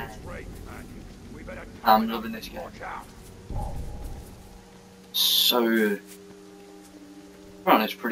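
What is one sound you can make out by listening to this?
Footsteps run through grass.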